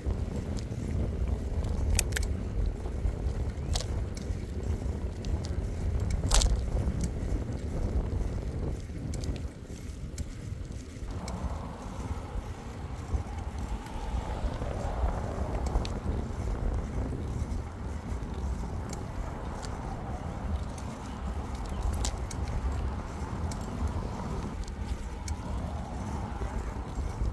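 Wind buffets the microphone steadily outdoors.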